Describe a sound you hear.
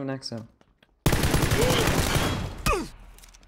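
Rapid gunfire bursts out loudly at close range.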